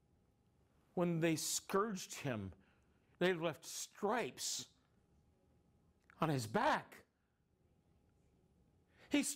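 A middle-aged man speaks with animation, close to the microphone, in short bursts.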